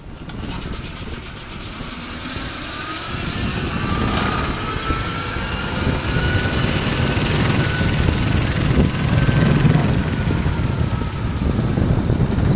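Small wheels roll over asphalt as a cart is pushed along.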